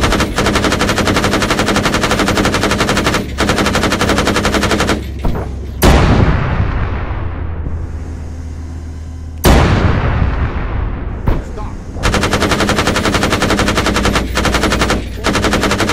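Twin cannons fire in rapid, rattling bursts.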